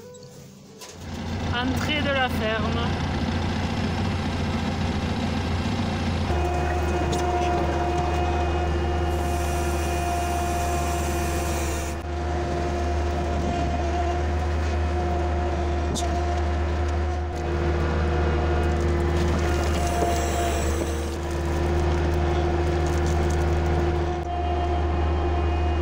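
A tractor engine runs with a steady low drone.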